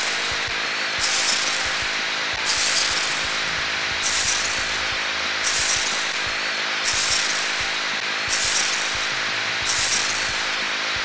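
A cartoon laser beam buzzes in short repeated bursts.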